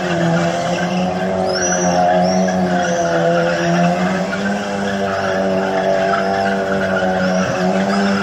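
Tyres squeal on cobblestones.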